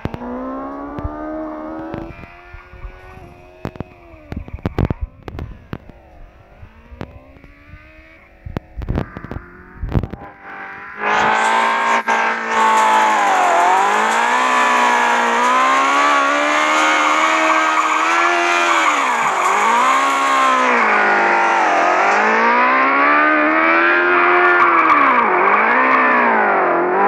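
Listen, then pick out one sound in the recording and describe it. A game car's engine revs and whines, rising and falling in pitch.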